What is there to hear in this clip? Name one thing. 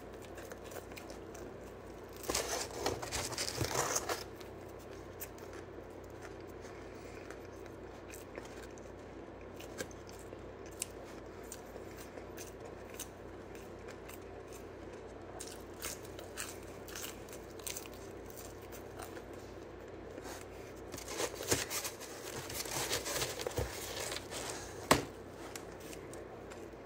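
A boy chews crunchy food noisily.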